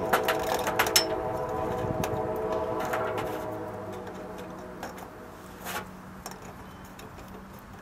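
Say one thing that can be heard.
Dry twigs snap and rattle as they are dropped into a small metal stove.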